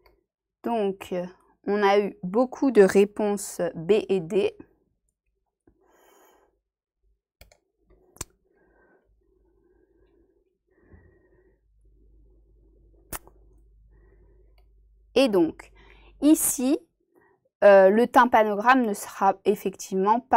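A young woman speaks calmly and clearly into a close microphone, pausing between phrases.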